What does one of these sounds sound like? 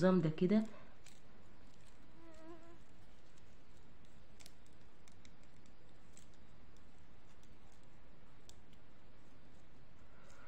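Plastic beads click softly against each other.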